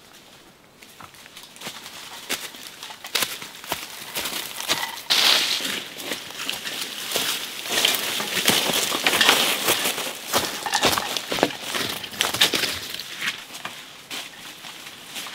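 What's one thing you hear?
Footsteps crunch and rustle through dry leaves close by.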